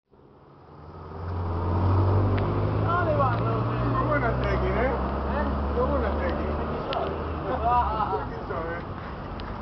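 A car engine rumbles close by.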